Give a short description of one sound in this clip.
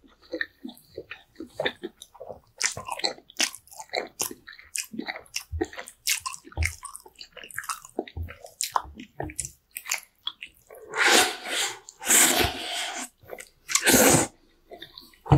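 A man slurps noodles loudly up close.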